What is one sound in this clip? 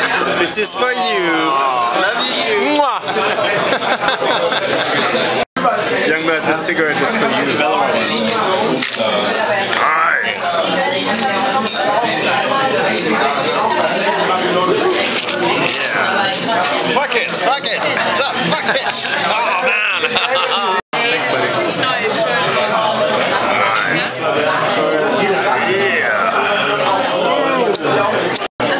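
A crowd of people chatter loudly in a busy room.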